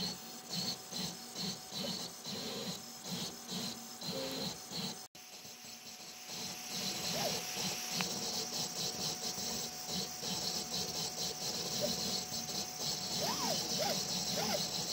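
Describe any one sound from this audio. Stepper motors whir and buzz in short, shifting bursts as a printer head moves.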